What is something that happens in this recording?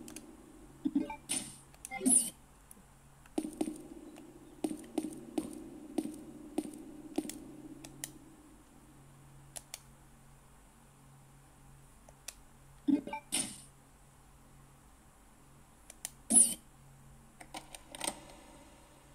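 Short electronic menu blips sound from a video game.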